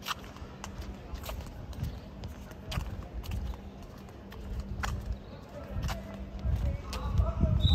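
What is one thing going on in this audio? Footsteps tap on pavement at a walking pace.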